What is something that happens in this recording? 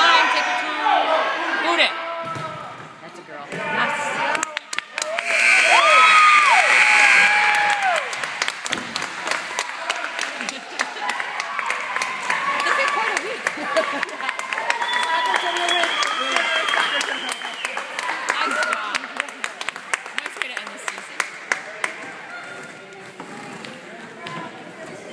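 A crowd of spectators cheers and shouts loudly in a large echoing gym.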